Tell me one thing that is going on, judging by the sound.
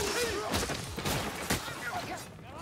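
A sword swings and strikes with a sharp clang.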